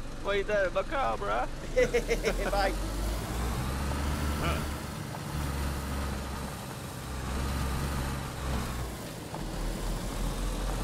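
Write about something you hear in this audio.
A car engine hums low as the car drives.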